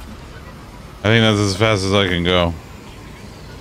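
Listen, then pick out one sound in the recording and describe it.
A man speaks briefly into a close microphone, his voice drawn out and animated.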